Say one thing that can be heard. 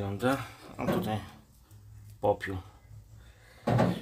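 A small metal stove drawer rattles open.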